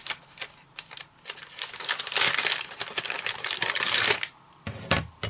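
Paper crinkles and rustles as a package is handled.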